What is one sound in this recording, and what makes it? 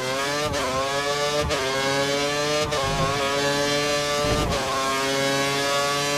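A racing car engine screams at high revs, climbing in pitch and dropping briefly with each gear change.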